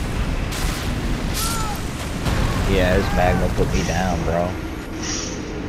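A huge beast growls and roars.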